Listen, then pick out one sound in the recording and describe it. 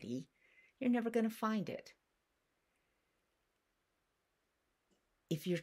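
An elderly woman speaks calmly and warmly, close to a microphone.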